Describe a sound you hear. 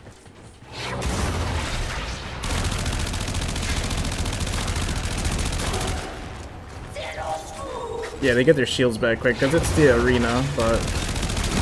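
A roaring swirl of blasts and whooshing blades rages close by.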